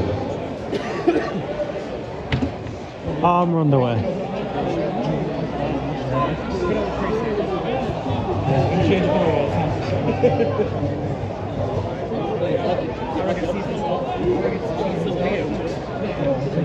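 Young men shout and call to each other across an open pitch outdoors.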